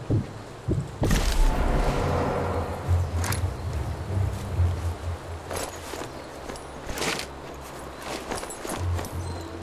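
Footsteps crunch softly on grass and gravel.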